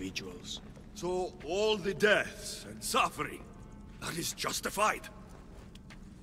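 A man asks a question in a low, tense voice.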